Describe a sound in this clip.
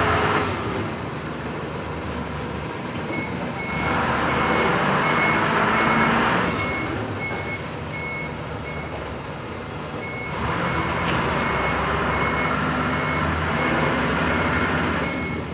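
A forklift engine rumbles and revs nearby.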